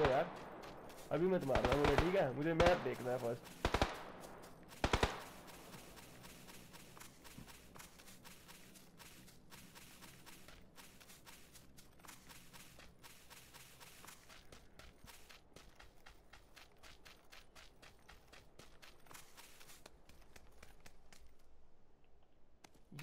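Footsteps run quickly over sand and dirt.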